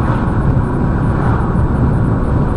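An oncoming car swishes past.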